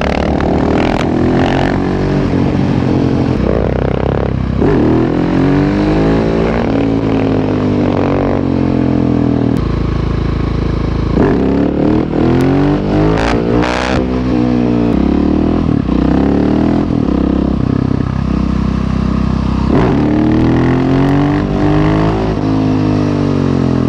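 Wind rushes past a moving rider outdoors.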